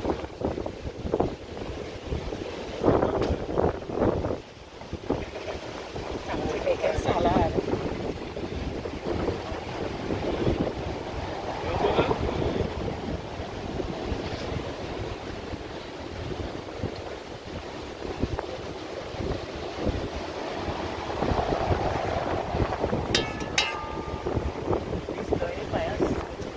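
A woman talks casually nearby, outdoors.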